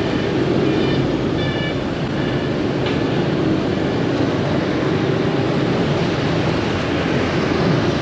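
A motor scooter engine hums while riding along a street.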